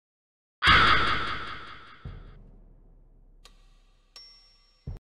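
Short electronic game chimes ring out and fade.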